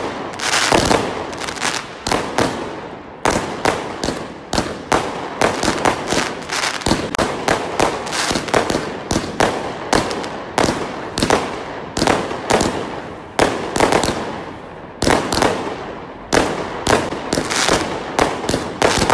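Fireworks burst with loud, rapid bangs and crackles.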